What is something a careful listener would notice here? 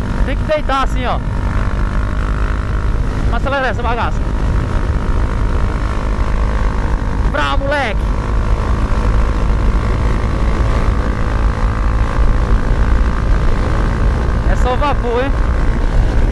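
A man talks from inside his helmet over the engine.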